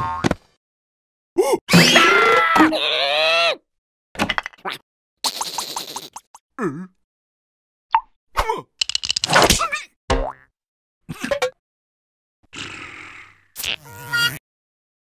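A cartoon creature babbles and squeals in a high, squeaky voice.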